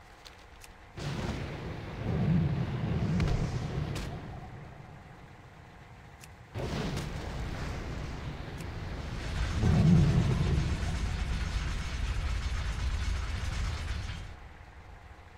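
A spray gun blasts with a loud, rushing hiss.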